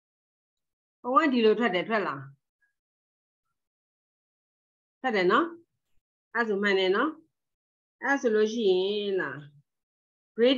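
A woman speaks calmly through an online call microphone, in short phrases with pauses.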